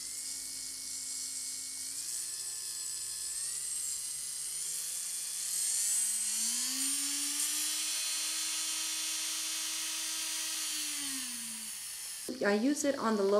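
A small electric drill whirs, its pitch rising as it speeds up and then falling as it slows down.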